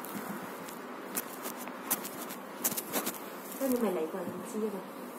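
Clothing rustles and thumps as it is handled.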